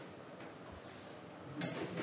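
Food pours from a bowl into a pot.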